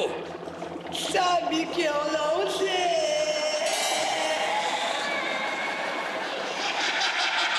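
A woman wails and sobs loudly.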